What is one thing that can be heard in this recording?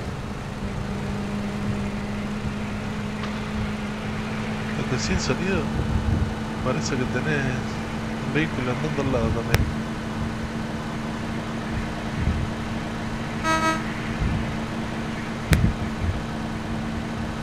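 A truck engine hums steadily as it drives on a dirt road.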